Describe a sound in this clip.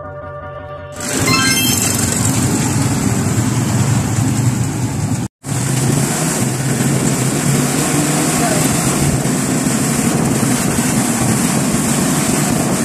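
An open motor tricycle rumbles along a road, with wind rushing past.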